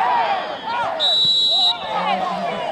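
A referee's whistle blows one sharp blast.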